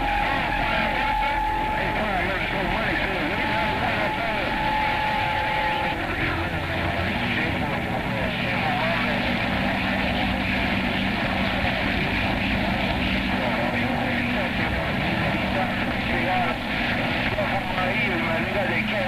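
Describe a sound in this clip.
Radio static hisses and crackles from a loudspeaker.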